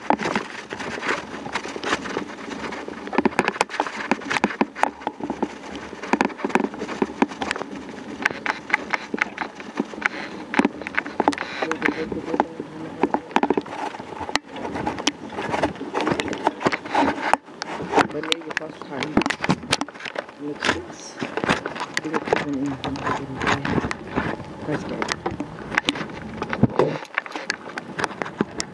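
Bicycle tyres rattle over a bumpy trail.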